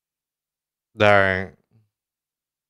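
A man speaks a few words briefly and close to a microphone.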